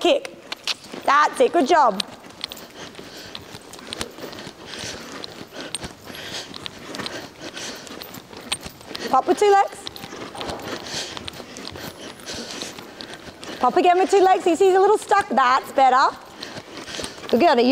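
A woman calls out loudly in a large echoing hall.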